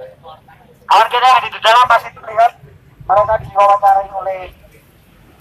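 A young man shouts loudly through a megaphone outdoors.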